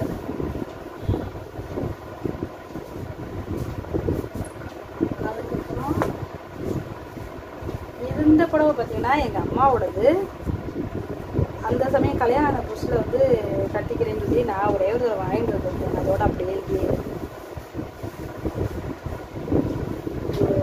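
Fabric rustles and flaps as cloth is unfolded and handled.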